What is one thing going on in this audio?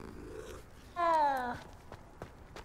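A cat meows.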